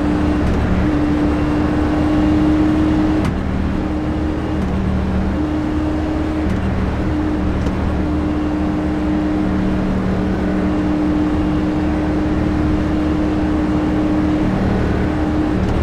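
A race car engine hums steadily at low speed.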